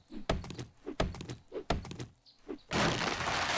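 A stone axe chops into a tree trunk with sharp thuds.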